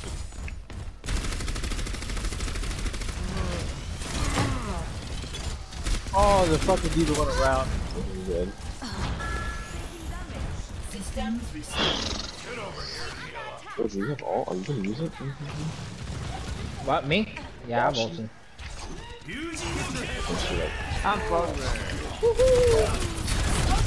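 A weapon fires rapid bursts of shots.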